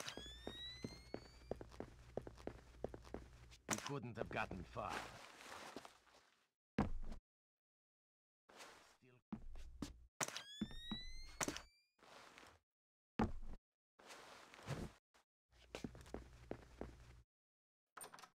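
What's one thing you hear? Soft footsteps creak on wooden stairs.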